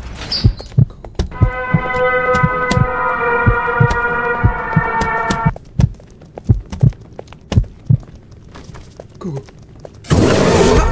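Footsteps thud steadily on a hard floor.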